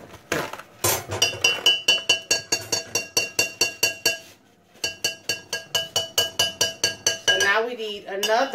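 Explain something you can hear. A whisk beats rapidly against a glass bowl.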